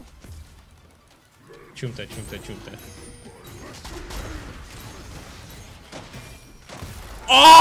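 Game spell effects crackle and hit.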